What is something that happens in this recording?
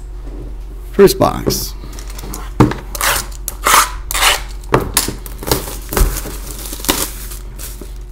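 A cardboard box is picked up and handled, with scraping and tapping noises.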